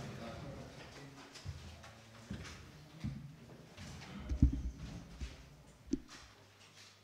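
A chair knocks and scrapes as a man sits down.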